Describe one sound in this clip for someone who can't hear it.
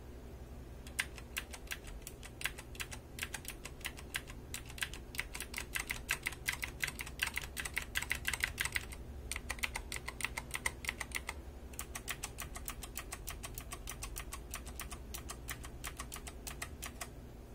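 Mechanical keyboard keys clack rapidly under typing fingers.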